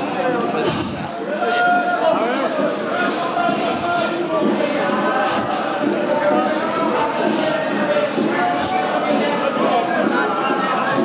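Many footsteps walk along the street.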